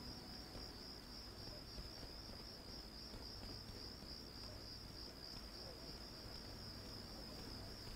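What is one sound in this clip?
Footsteps walk slowly down stone steps.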